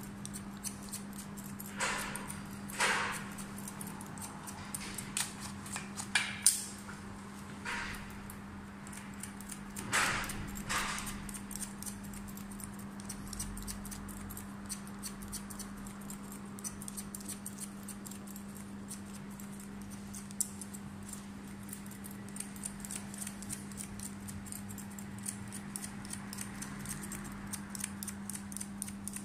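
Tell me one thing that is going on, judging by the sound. Scissors snip quickly through hair, close by.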